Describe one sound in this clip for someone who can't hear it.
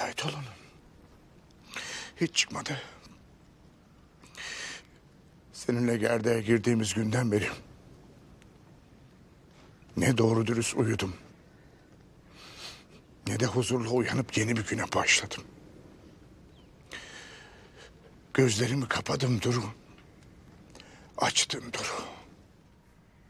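An elderly man speaks slowly and gravely, close by.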